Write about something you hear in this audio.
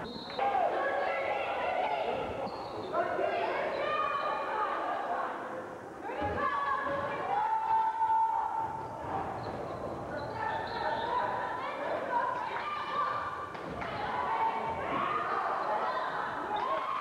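Spectators shout and cheer loudly in an echoing gym.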